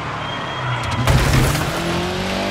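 A car bumps and thuds against a barrier.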